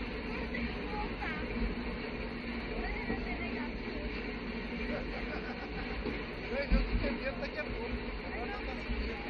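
A boy talks and laughs close by.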